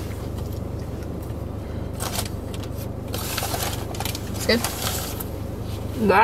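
A paper bag rustles.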